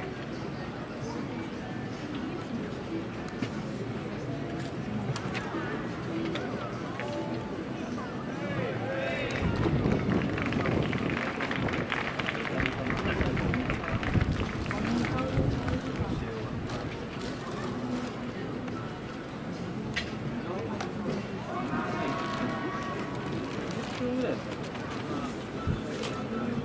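A crowd murmurs outdoors at a distance.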